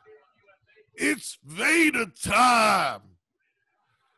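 A second man speaks emphatically over an online call.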